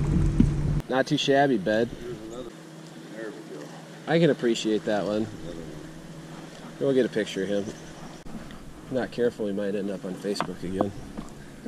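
A man talks with animation close by, outdoors.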